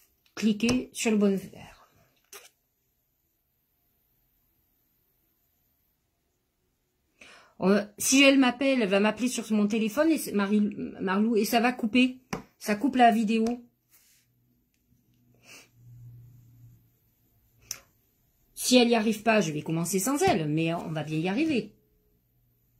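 A middle-aged woman talks calmly and close up, with pauses.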